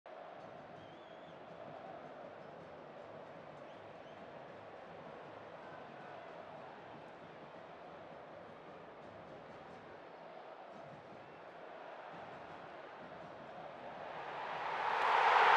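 A stadium crowd murmurs and chants steadily in the distance.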